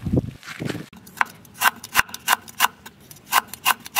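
A knife chops rhythmically on a wooden board.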